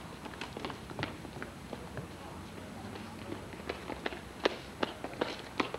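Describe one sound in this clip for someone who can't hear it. Boots stamp and march on pavement.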